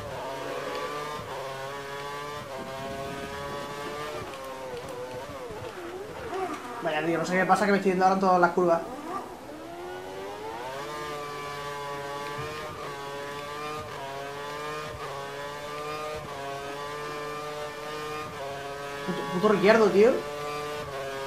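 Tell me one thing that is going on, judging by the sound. A racing car engine whines at high revs, dropping in pitch when slowing and rising again as it speeds up.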